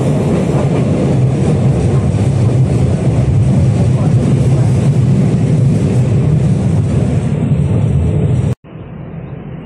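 A subway train rumbles loudly along the tracks.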